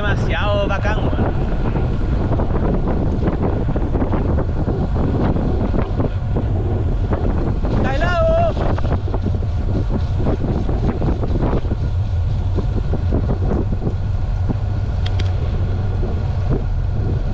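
Wind rushes loudly past, outdoors.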